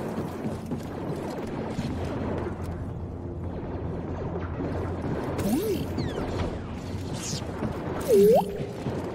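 A lightsaber hums steadily and buzzes as it swings.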